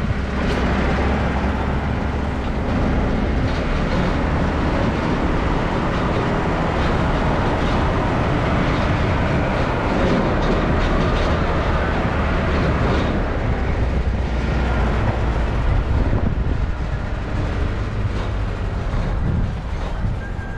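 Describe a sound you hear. Tyres rumble over a paved road.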